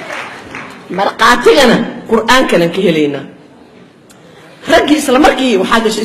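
A woman speaks with passion into a microphone, heard through loudspeakers.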